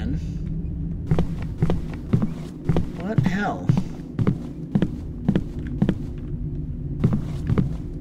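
Footsteps thud slowly across a wooden floor.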